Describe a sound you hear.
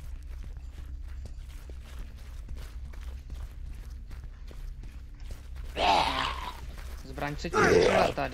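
Footsteps walk slowly across a wooden floor.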